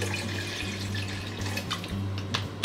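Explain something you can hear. Water pours from a plastic bottle into a kettle.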